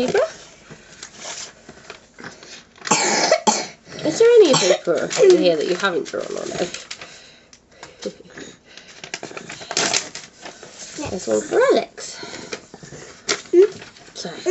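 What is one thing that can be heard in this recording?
Paper pages rustle and crinkle.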